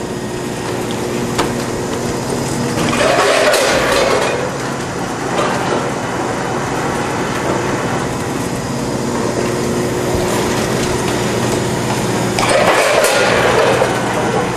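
An inline band sealer runs with a steady motor hum.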